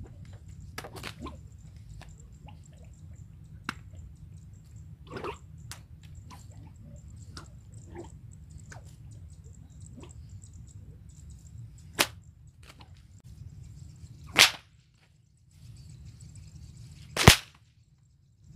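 A whip cracks sharply outdoors.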